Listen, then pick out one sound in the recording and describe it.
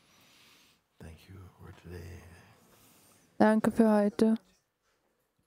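An elderly man speaks slowly and softly into a microphone.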